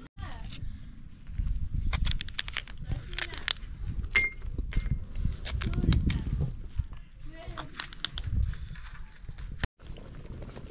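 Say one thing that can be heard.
A knife cuts and scrapes a dried lemon.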